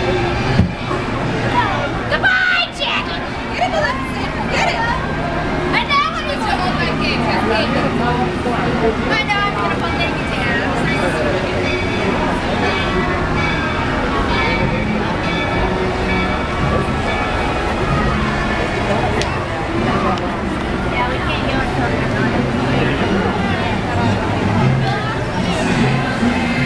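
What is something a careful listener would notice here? A crowd of spectators chatters outdoors.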